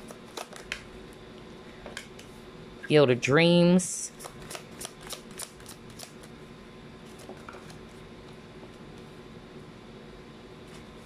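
Playing cards softly tap and slide on a wooden tabletop.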